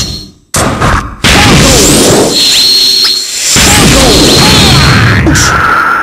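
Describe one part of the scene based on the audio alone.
Punches and kicks land with loud thuds and whooshes in a video game fight.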